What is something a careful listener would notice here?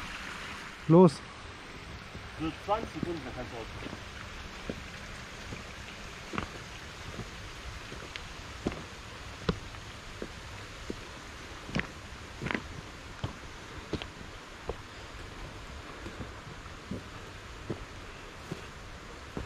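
Footsteps crunch on a stony dirt path.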